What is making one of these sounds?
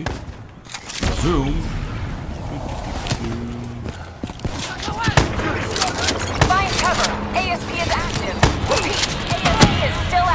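Gunfire and explosions crack and boom in a loud battle.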